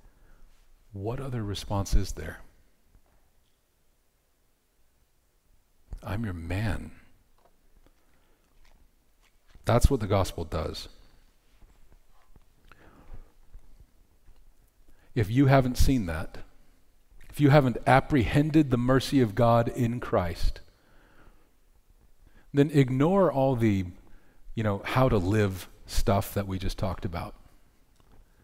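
A man speaks into a microphone with animation, in bursts separated by pauses.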